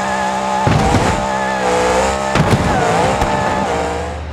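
A monster truck crashes and tumbles with heavy thumps.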